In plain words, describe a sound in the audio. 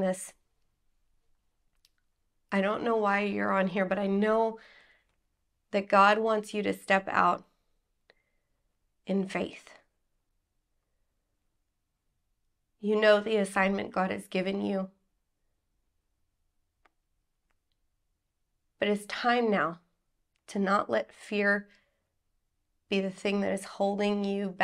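A woman speaks calmly and clearly, close to a microphone, with pauses between phrases.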